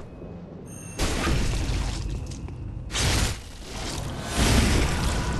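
A blade slashes into flesh with wet, heavy hits.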